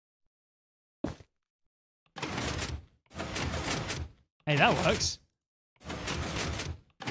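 Blocks are placed with short, rustling thuds.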